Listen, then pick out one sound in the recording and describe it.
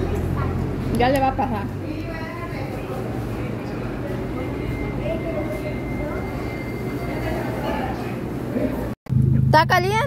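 Several people talk quietly in the background of a busy room.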